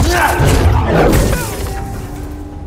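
A lightsaber hums and clashes loudly.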